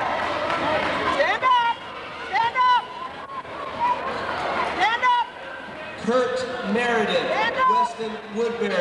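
Spectators shout and cheer loudly in a large echoing hall.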